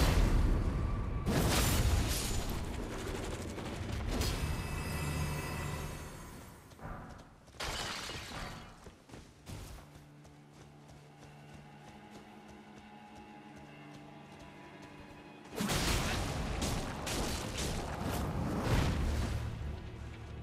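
Heavy weapon blows strike with loud crashes and thuds.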